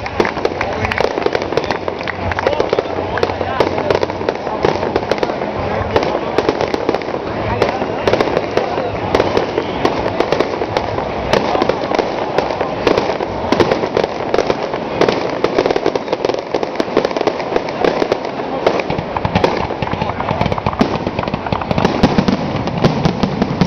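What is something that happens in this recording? Fireworks crackle and bang loudly overhead.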